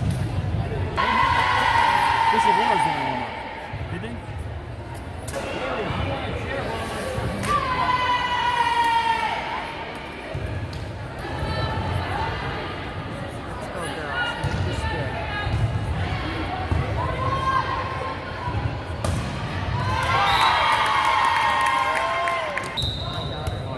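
A team of young women cheers loudly in a large echoing gym.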